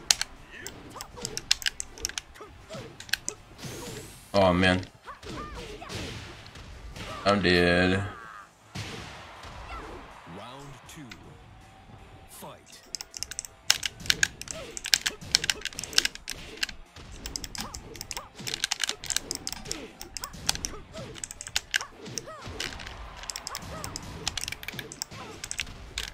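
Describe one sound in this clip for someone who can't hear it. Punches and kicks land with sharp smacks in a video game.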